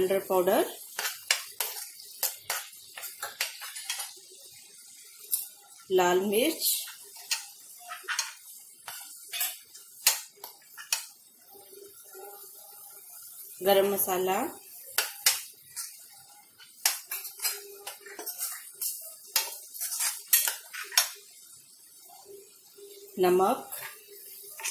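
A metal spoon scrapes and clinks against a pan.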